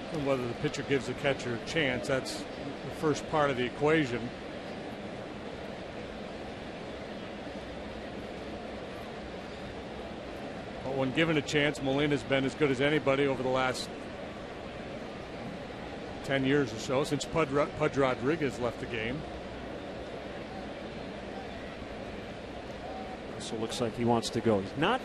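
A large crowd murmurs steadily outdoors.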